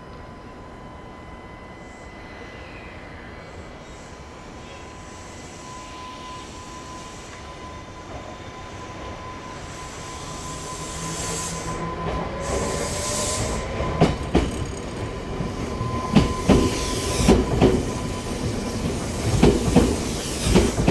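An electric commuter train pulls into a station and rumbles past close by.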